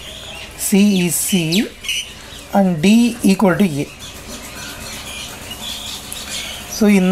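A marker pen squeaks and scratches across paper.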